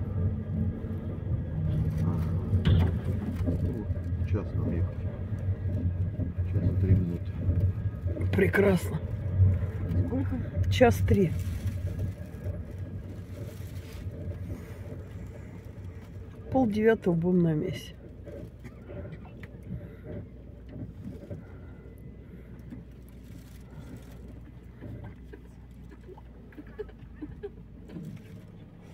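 A vehicle rumbles steadily while driving, then quietens as it slows down.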